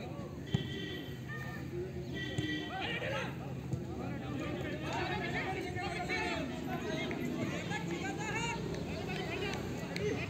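Young men shout to each other from across an open field outdoors.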